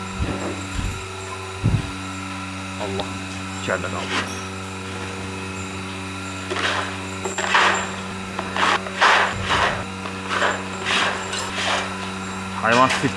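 Dry pellets rustle and pour as a scoop scrapes through them.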